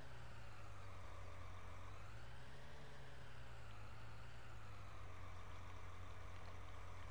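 A hydraulic crane arm whines as it moves.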